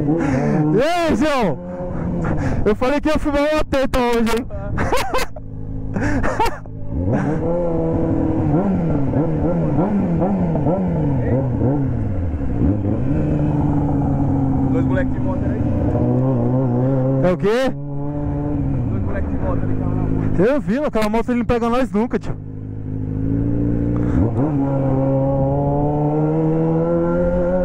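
A motorcycle engine hums and rises and falls in pitch.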